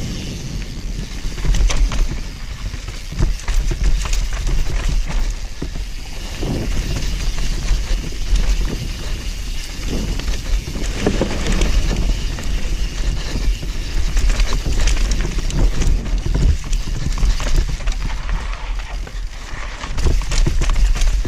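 Bicycle tyres crunch and rattle over dirt and stones.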